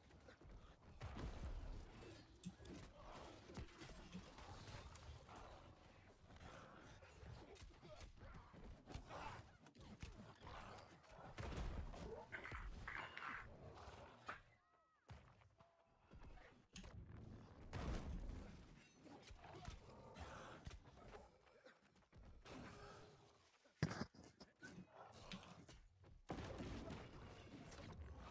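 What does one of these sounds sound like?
Spells burst and whoosh loudly.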